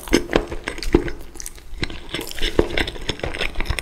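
Fingers pick up crisp food pieces with crackling rustles.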